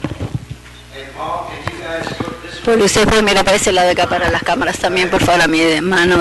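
A man speaks into a microphone, heard over loudspeakers in a large hall.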